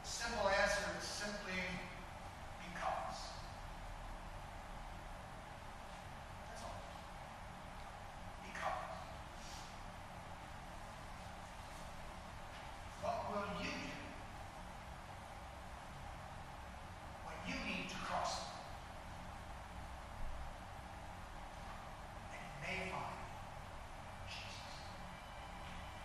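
A middle-aged man speaks calmly and slowly, with long pauses.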